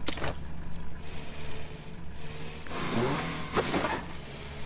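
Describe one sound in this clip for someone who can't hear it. Water splashes and sprinkles onto soil.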